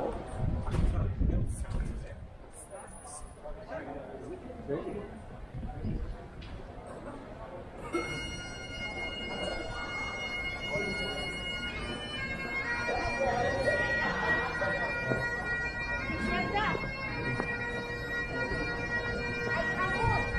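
Many people chat and murmur nearby outdoors.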